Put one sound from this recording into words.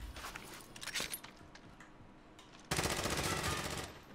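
Footsteps thud on hard stairs.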